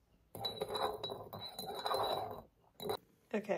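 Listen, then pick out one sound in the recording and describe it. A spoon stirs and clinks in a ceramic mug.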